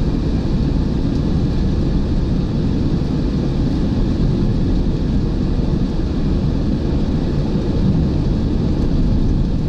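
A car engine hums steadily while driving fast on a highway.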